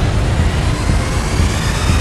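Electricity crackles and bursts loudly.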